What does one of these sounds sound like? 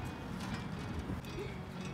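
An outdoor exercise machine creaks rhythmically.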